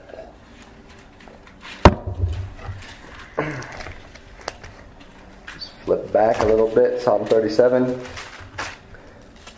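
Paper pages rustle as a book is leafed through.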